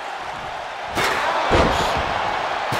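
A metal folding chair slams hard onto a body with a loud crack.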